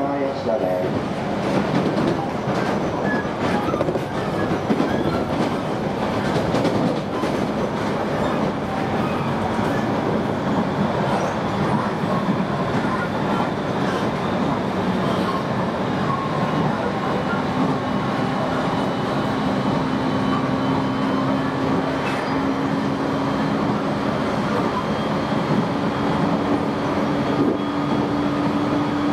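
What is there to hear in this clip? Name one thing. Wheels rumble on the rails, heard from inside a moving electric train.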